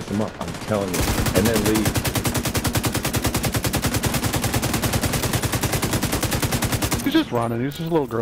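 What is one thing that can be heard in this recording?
Rapid automatic gunfire rattles in a long burst.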